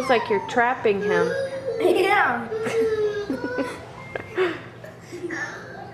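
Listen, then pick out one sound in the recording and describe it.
A boy talks and laughs playfully nearby.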